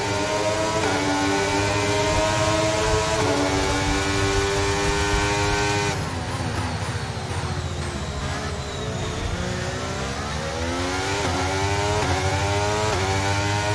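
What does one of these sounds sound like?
A racing car engine screams at high revs, drops in pitch while slowing, then revs back up.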